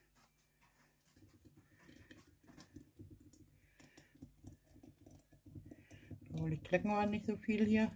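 Thick liquid pours into a glass jar.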